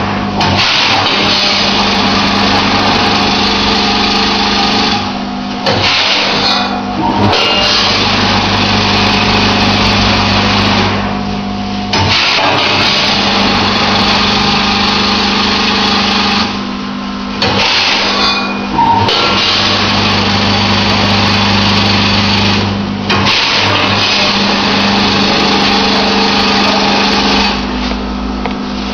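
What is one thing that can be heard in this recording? A filling machine hums and whirs loudly, pausing briefly every few seconds.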